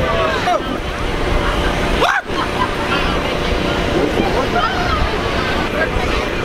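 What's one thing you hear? Children and teenagers shout and chatter excitedly outdoors.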